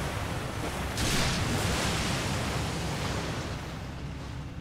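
A large creature thrashes and splashes heavily in the water.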